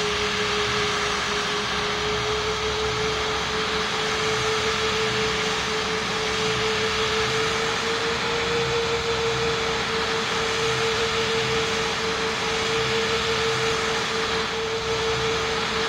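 Jet engines roar steadily with a constant whine.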